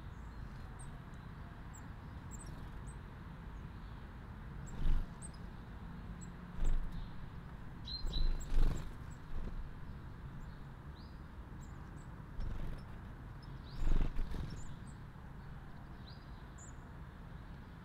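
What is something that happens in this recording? Small birds chirp in short, high calls.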